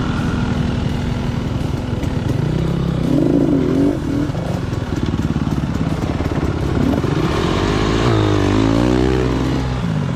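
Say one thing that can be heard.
Another dirt bike engine revs nearby.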